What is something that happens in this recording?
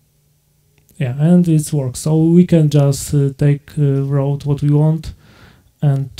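A young man speaks through a microphone into a room.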